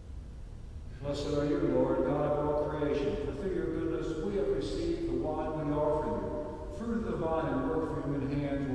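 A man chants steadily through a microphone in a large echoing hall.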